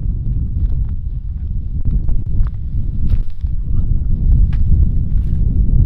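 Boots crunch on dry stubble.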